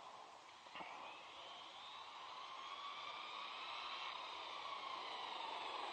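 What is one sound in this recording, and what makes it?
A small toy car's electric motor whines, slowly rising in pitch.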